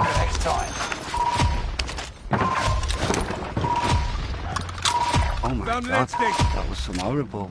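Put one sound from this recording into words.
Short electronic beeps repeat as a score tallies up.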